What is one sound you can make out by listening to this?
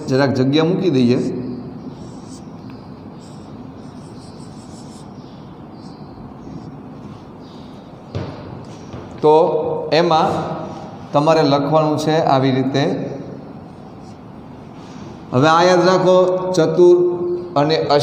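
A man speaks calmly into a clip-on microphone, as if teaching.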